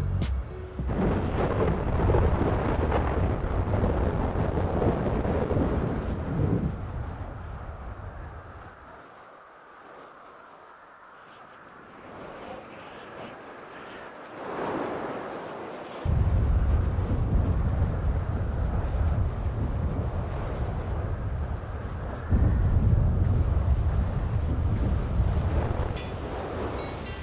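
Fireworks crackle and rumble with a loud, steady roar.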